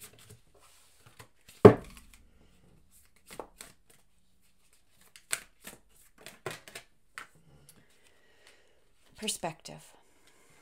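Playing cards shuffle and slap together in hands.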